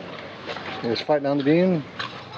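A small dog whines in a high, wavering voice.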